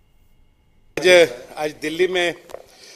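An elderly man speaks into microphones with animation.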